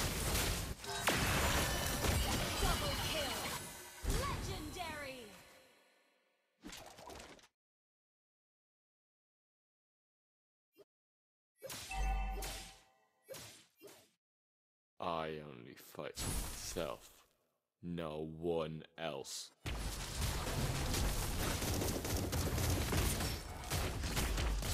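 Game sound effects of magic blasts and sword strikes crash and whoosh.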